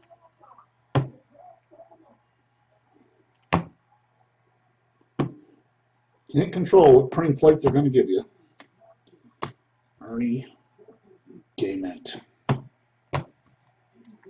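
Card packs tap and click as a man handles them.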